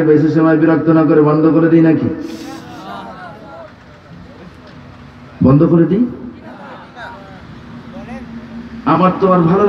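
A man recites in a long, drawn-out singing voice through a microphone, echoing in a large space.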